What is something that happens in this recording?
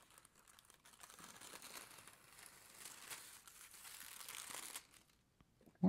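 A thin plastic foil sheet crinkles softly as it is peeled away.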